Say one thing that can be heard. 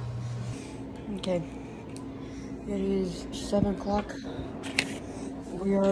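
A boy talks quietly, close by.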